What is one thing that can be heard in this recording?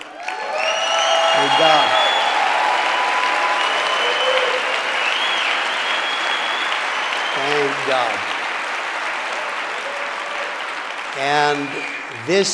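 A large crowd applauds and cheers in a big hall.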